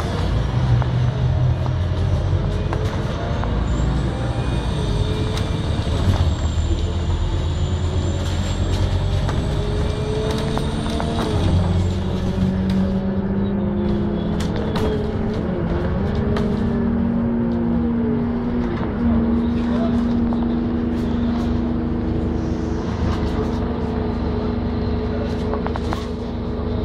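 A vehicle's engine hums steadily as it drives along.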